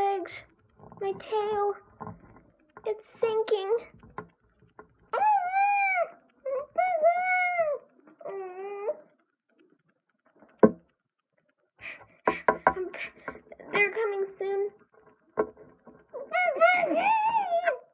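Small plastic toys tap and rustle as a hand moves them.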